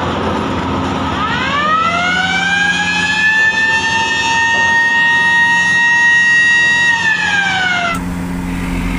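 An electric motor whines loudly as it spins up, holds, then drops.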